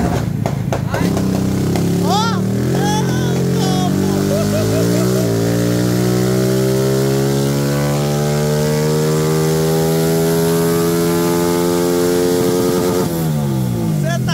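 A motorcycle engine revs up, its pitch climbing steadily, then drops off.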